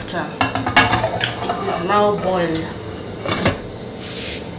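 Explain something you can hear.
A metal lid clanks down onto a pot.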